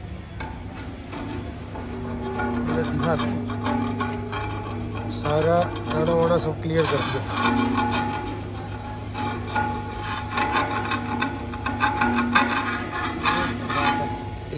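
A metal scraper grinds and scrapes along a steel beam.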